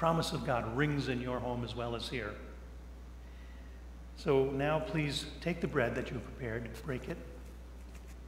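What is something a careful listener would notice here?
An older man speaks calmly and clearly into a small microphone.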